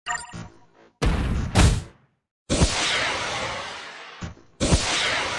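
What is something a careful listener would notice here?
Vehicles crash and smash through debris.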